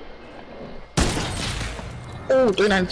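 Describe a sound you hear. A loud electronic whoosh bursts out.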